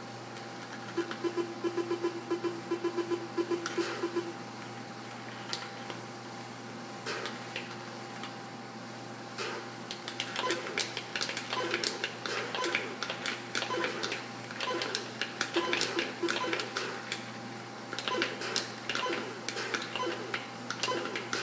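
An Atari 2600 video game plays buzzing, electronic bleeps and zaps through a TV speaker.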